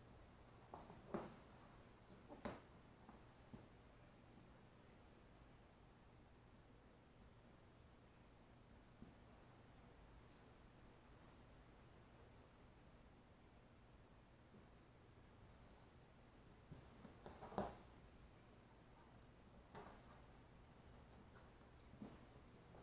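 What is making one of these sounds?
Hands rustle and smooth fabric on a padded surface.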